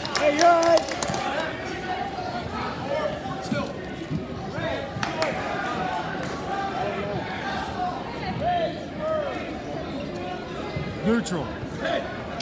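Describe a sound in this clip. A crowd of spectators cheers and shouts in a large echoing gym.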